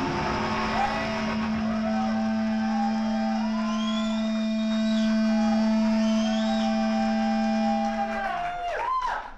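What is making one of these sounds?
Amplified electric guitars play loudly.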